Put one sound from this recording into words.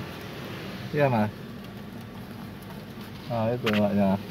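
A man speaks close by inside a car.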